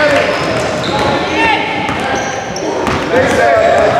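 A basketball bounces as a player dribbles on a hardwood court in an echoing gym.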